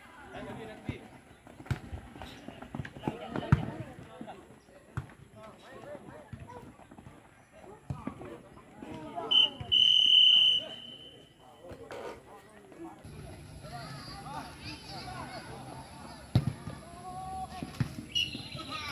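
Boys shout and call out to each other across an open field.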